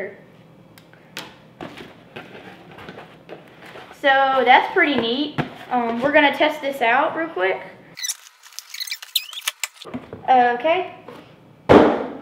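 Cardboard flaps rustle and scrape as a box is opened.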